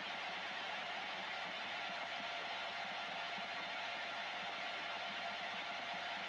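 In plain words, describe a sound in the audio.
Radio static hisses steadily from a loudspeaker.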